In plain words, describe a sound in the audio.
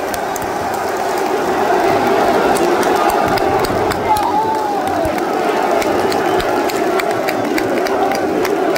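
Fans clap their hands close by.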